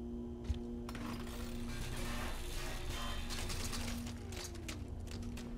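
A power tool grinds through metal with a harsh hiss.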